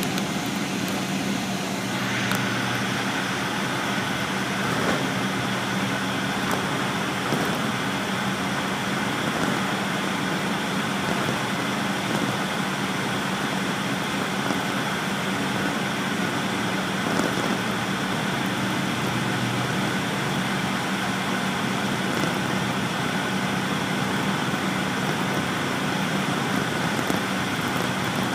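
A vehicle's engine hums steadily from inside a moving car.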